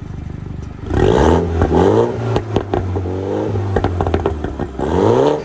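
A car engine revs sharply up and down in bursts.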